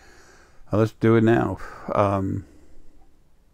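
An older man speaks briefly and calmly into a close microphone.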